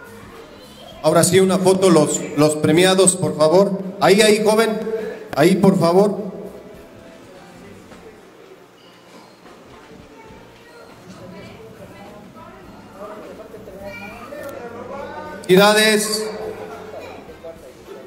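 A man speaks loudly in an echoing hall.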